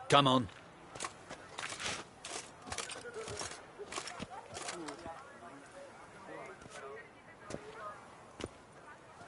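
Footsteps clack on cobblestones.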